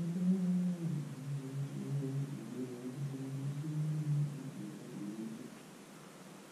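An electronic keyboard plays a slow line of low notes that stops partway through.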